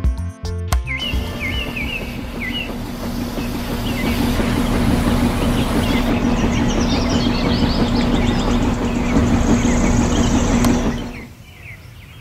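A small electric motor whirs steadily as a toy mixer drum spins.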